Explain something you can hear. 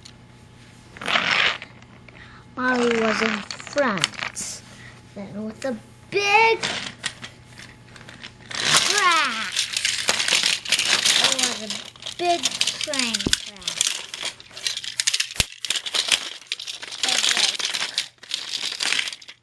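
A young child talks excitedly close by.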